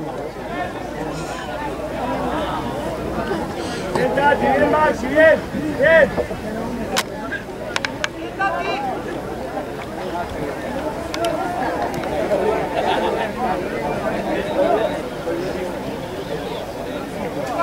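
Players shout to one another across an open field outdoors.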